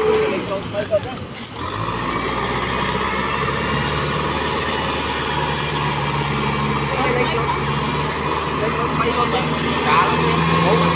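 Tractor wheels churn through wet mud.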